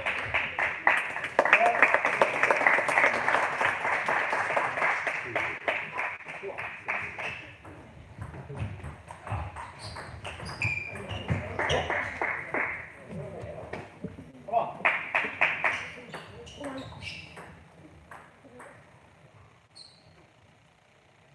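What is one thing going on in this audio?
A table tennis ball clicks back and forth on paddles and the table in an echoing hall.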